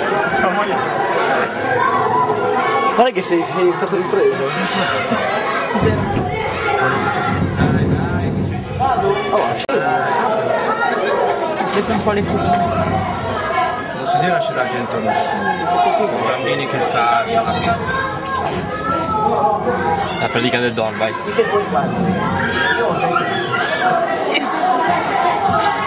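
A crowd talks loudly all around.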